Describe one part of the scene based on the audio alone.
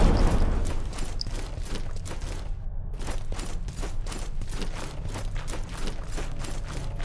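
Armored footsteps clank on stone.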